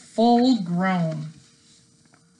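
A middle-aged woman speaks into a nearby microphone.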